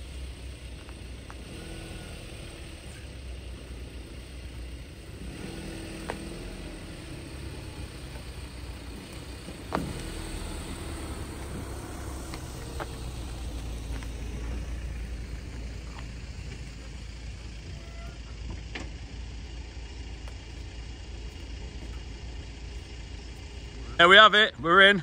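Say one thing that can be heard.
A van engine rumbles as the van creeps slowly closer.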